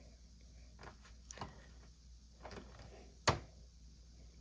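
Plastic action figures click and tap softly as hands pose them.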